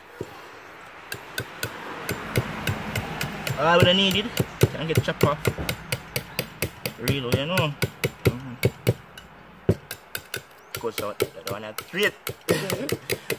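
A knife shaves and scrapes wood in quick, repeated strokes.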